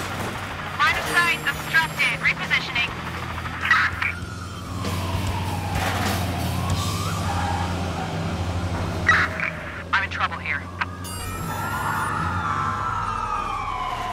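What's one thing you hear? A heavy bus engine rumbles steadily.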